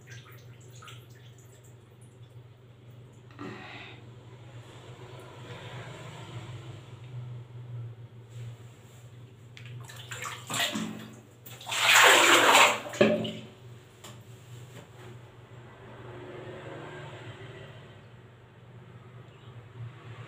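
A woman speaks softly and close by, as if into a phone.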